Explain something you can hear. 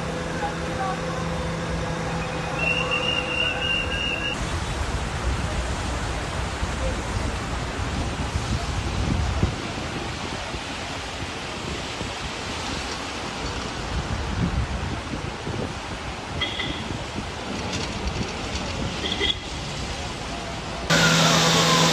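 Cars swish through deep floodwater.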